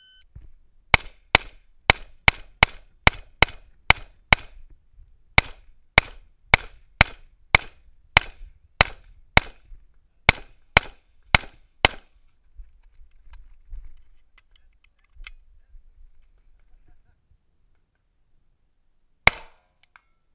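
A rifle fires rapid shots outdoors, each shot sharp and loud.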